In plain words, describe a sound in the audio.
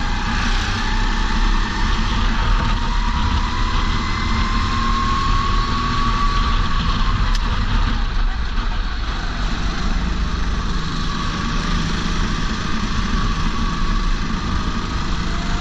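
A racing kart engine screams as it accelerates and then slows into a corner.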